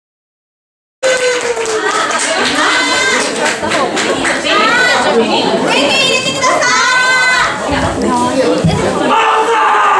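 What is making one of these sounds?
Young women talk with animation through microphones over a loudspeaker.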